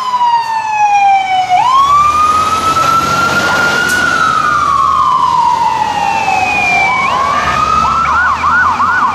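A fire truck engine rumbles loudly as it drives past.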